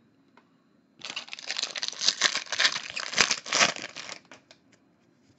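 A foil wrapper crinkles and tears loudly as it is ripped open.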